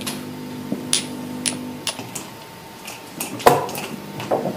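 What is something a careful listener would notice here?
Checkers clack on a wooden board as they are moved.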